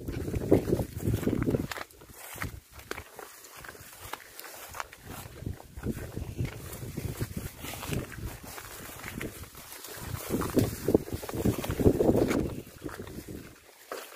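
Footsteps swish and rustle through tall grass.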